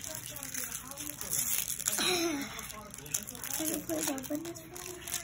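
Wrapping paper crinkles and tears.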